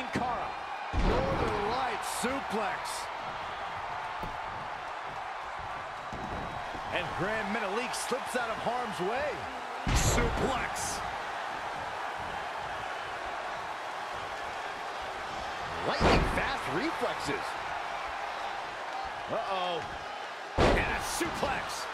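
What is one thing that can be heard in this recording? Bodies slam heavily onto a wrestling mat.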